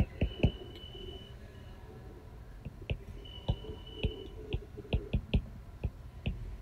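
A stylus taps and scratches on a tablet as writing is added.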